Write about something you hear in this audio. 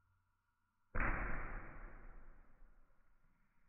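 Liquid pours and splashes into a paper cup.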